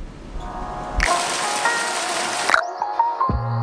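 Water churns and splashes in a pool.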